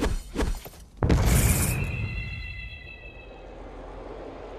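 A magic blast bursts with a bright ringing tone.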